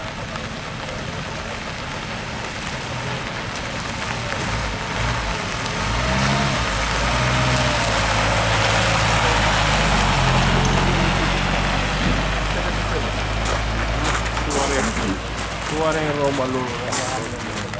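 A vintage car engine hums and revs as the car rolls slowly past, getting louder and then fading away.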